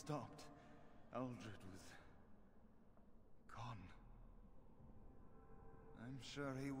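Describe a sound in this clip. A man speaks calmly, close up, in bursts with pauses.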